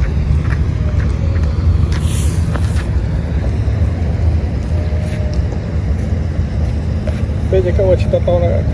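A fishing net rustles as it is handled and gathered.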